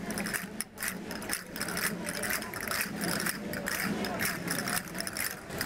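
Dancers' shoes tap and shuffle on a stone pavement.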